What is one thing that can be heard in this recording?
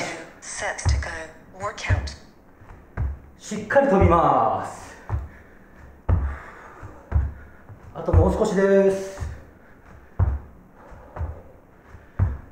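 Dull thumps land on a padded floor at a steady pace.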